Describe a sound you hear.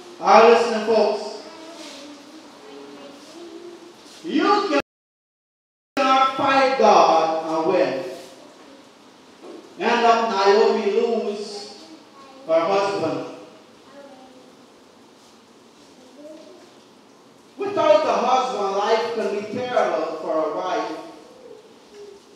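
A man preaches with animation into a microphone, heard through a loudspeaker.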